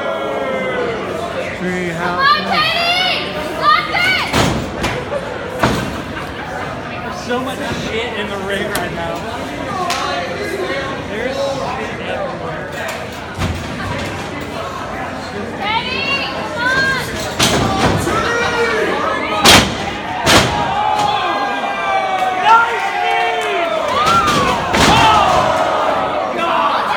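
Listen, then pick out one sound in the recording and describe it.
A crowd of spectators shouts and cheers in a crowded hall.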